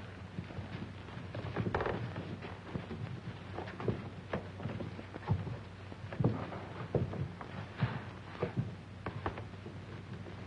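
Several people's footsteps shuffle and scuff as they crowd through a doorway.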